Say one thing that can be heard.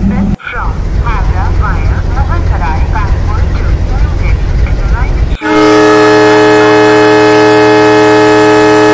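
A diesel locomotive engine idles with a low rumble.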